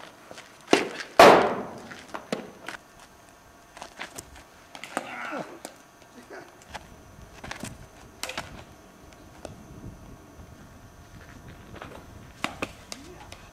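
A metal bat cracks sharply against a ball several times.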